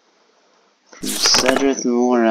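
A page of a book turns with a rustle.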